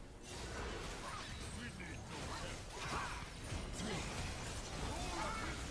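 Game spell effects crackle and blast in a busy fight.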